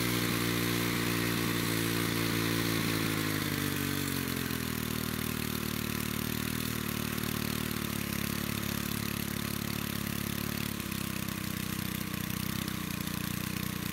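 A small two-stroke engine idles close by, its speed dropping and then settling lower.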